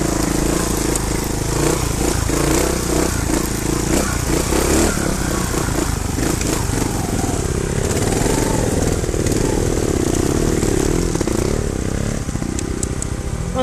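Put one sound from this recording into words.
A dirt bike engine revs and sputters close by.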